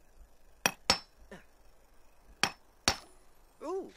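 A hammer taps sharply on rock a few times.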